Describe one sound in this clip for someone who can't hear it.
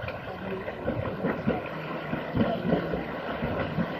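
Water splashes as a child swims.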